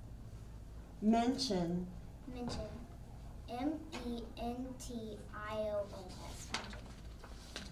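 A second young girl speaks clearly into a microphone.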